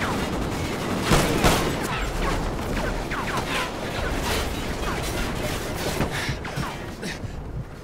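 Explosions boom nearby and debris rains down.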